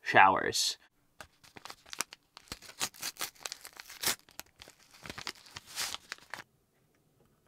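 A paper tea packet crinkles and tears.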